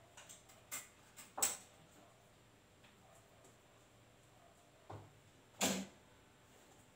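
A sewing machine clacks and knocks sharply a few times.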